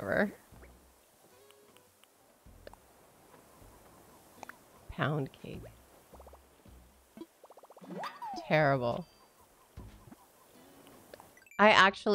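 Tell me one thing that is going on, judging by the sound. A woman speaks with animation, close to a microphone, in short bursts.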